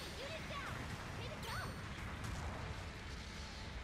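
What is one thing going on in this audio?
A large explosion booms.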